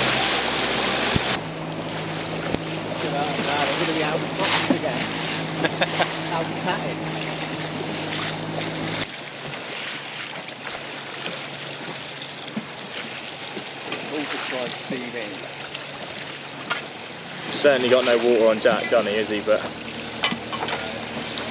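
Small waves lap and splash nearby.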